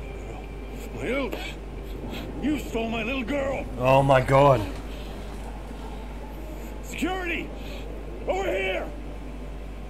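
A man speaks angrily and forcefully, close by.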